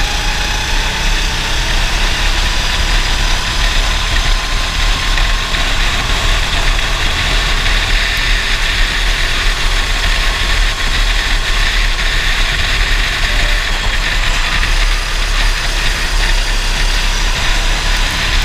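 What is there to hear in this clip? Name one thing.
Wind rushes past outdoors at speed.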